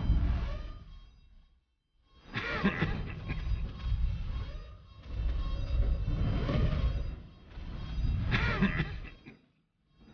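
A heavy metal staff swings and strikes with deep booming thuds.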